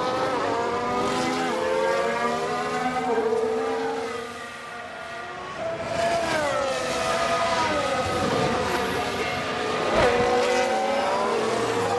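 Racing car engines whine at high revs, rising and falling in pitch as the cars pass.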